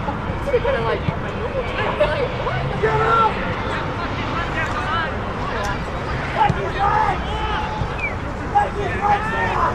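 Young men shout to each other across an open field, heard from a distance.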